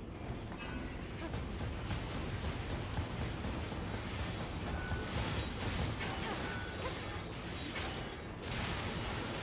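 Explosions boom and rumble in a video game.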